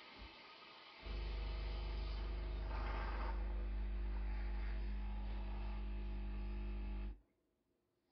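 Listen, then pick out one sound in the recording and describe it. A coffee machine's pump hums steadily, then stops.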